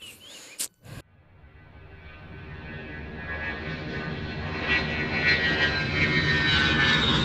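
A jet airliner's engines roar louder and louder as it takes off.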